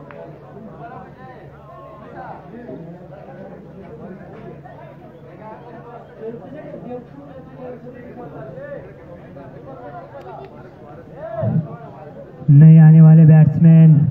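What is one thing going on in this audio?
Several men talk and call out at a distance outdoors.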